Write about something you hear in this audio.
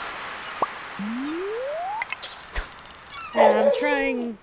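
A fishing reel winds in a line.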